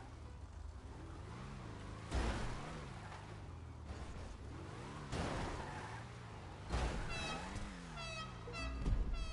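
Race car engines roar and whine as the cars speed around a track.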